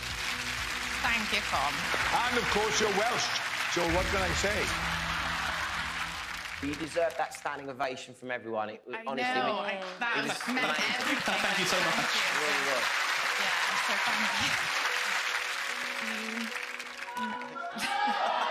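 An audience cheers and applauds loudly in a large hall.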